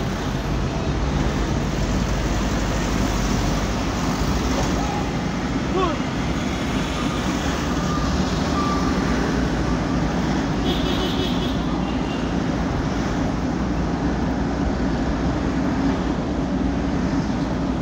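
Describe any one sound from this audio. Tyres roll steadily on pavement.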